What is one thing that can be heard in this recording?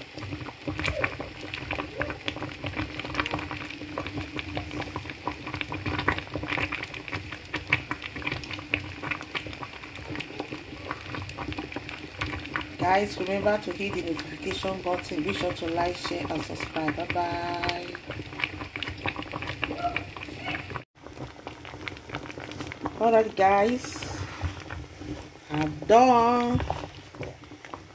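A thick stew bubbles and pops in a pot.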